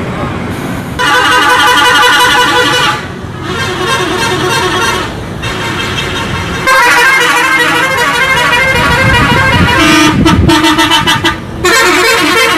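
A large bus engine rumbles as a bus drives past.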